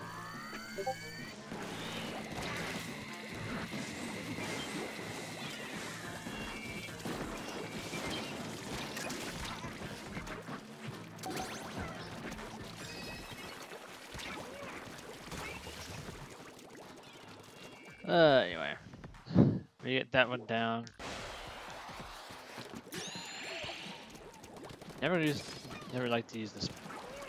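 Video game effects splat and pop steadily.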